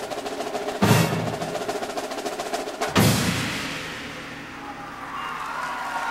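A large gong is struck hard and rings out loudly, slowly fading.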